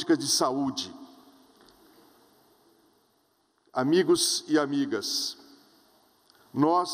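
A middle-aged man speaks calmly through a microphone in a large echoing hall.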